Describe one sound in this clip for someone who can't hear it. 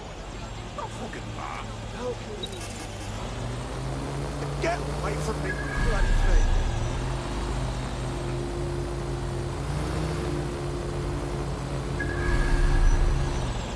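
A drone's propellers hum steadily, rising and falling in pitch.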